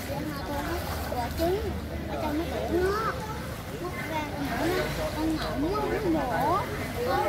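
Children shout and squeal in an echoing space.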